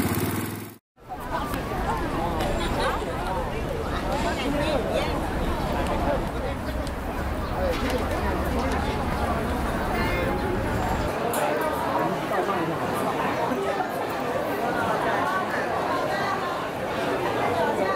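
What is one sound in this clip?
A large crowd of people chatters outdoors.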